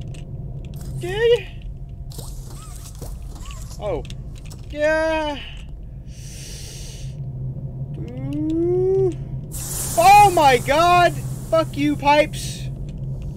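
A man speaks with animation into a microphone, his voice rising and falling in exaggerated exclamations.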